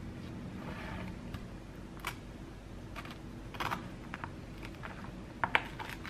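A knife scrapes softly while spreading cheese on toast.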